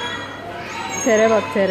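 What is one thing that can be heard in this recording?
A young child cries out in a high voice close by.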